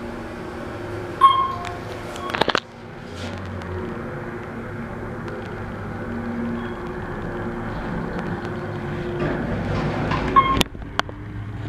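An elevator hums steadily as it moves.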